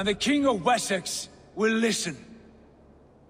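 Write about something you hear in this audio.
A man speaks in a low, stern voice close by.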